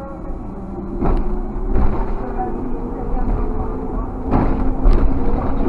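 Tyres thump over bumps in the road.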